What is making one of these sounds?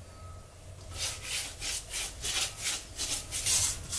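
A spatula stirs and scrapes a thick paste.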